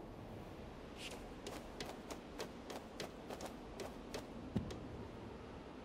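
Quick footsteps patter across a hard roof.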